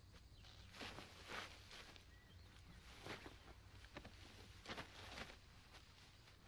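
Dry leaves and twigs rustle underfoot.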